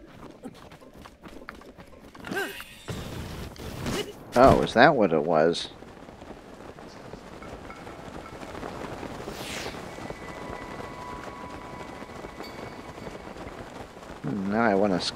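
Wind howls through a snowstorm.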